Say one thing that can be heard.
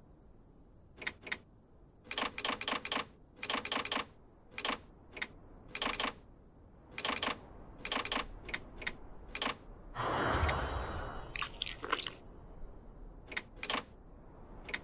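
Short interface clicks sound as items are picked.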